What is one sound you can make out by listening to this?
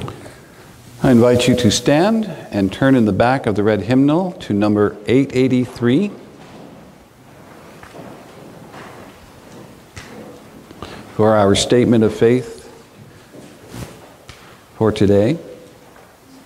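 A middle-aged man speaks calmly and slowly in a room with a slight echo.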